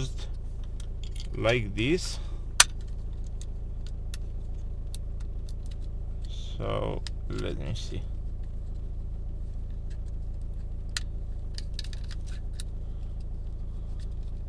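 Plastic parts click and rattle as they are handled.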